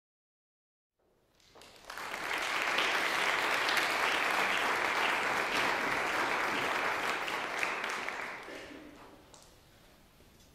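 An audience applauds in a large echoing hall, then the clapping fades.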